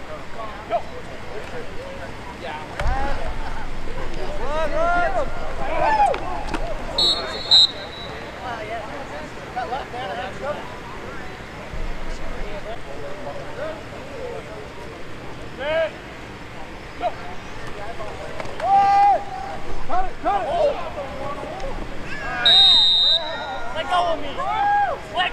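Spectators shout and cheer outdoors, men and women calling out with excitement.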